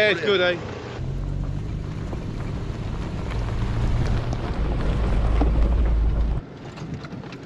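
An off-road vehicle engine rumbles low as it drives over rocky ground.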